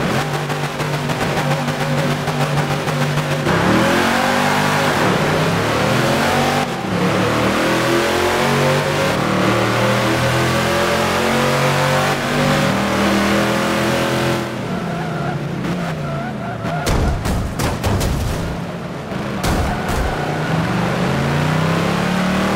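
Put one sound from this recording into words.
Several racing car engines roar and rev hard, rising in pitch as the cars speed up.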